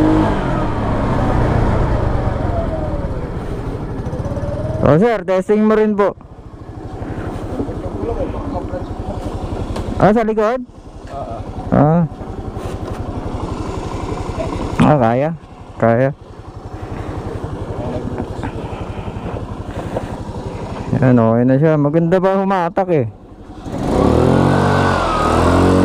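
A scooter engine idles close by.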